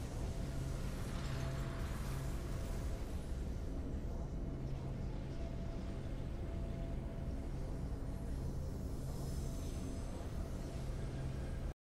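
Triumphant fanfare music plays steadily.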